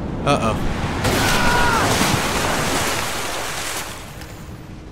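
Water pours and splashes loudly.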